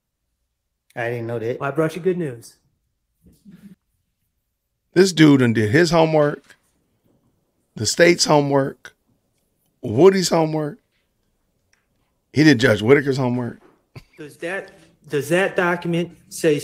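A man speaks with measured pauses through a microphone.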